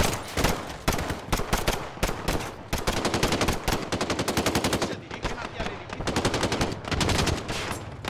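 Footsteps run over wet pavement.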